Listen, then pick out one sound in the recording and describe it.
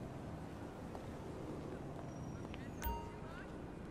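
Footsteps tap on a paved walkway.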